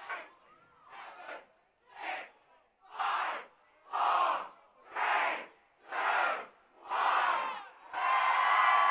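A large crowd chants in loud rhythmic bursts.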